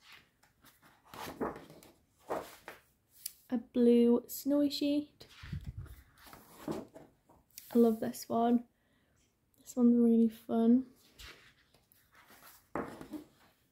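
Sheets of stiff paper rustle and flap as pages are turned.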